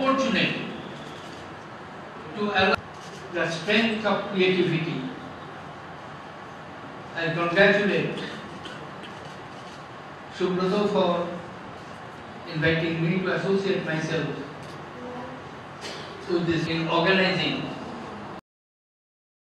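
An elderly man speaks slowly into a microphone, heard through loudspeakers in an echoing hall.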